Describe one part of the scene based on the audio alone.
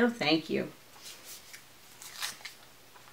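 Paper rustles softly in a woman's hands.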